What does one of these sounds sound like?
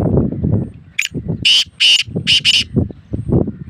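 A caged bird gives a few loud, sharp calls.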